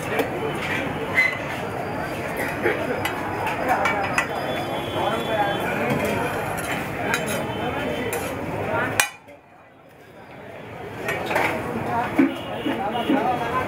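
A metal spatula scrapes across a griddle.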